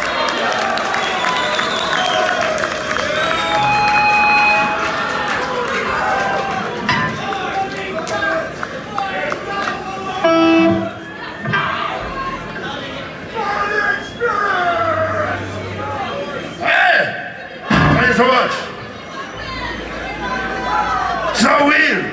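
A man speaks through a loudspeaker.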